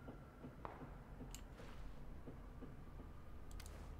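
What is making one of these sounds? A rifle rattles softly as it is raised to aim.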